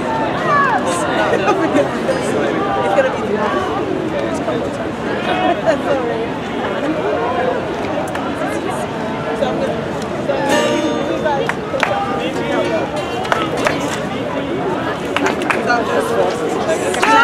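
A group of people sing together outdoors, close by.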